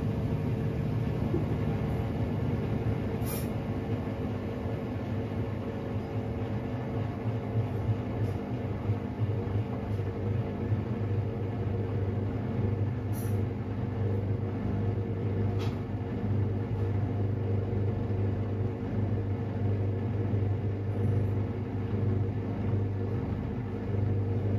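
A washing machine drum turns with a steady low hum.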